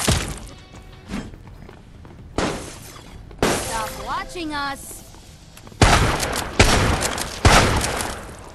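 Heavy blows and shots crack loudly in short bursts.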